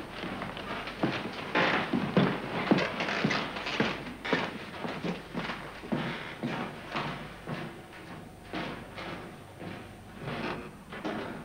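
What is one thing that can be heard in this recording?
Footsteps cross a wooden floor and fade away.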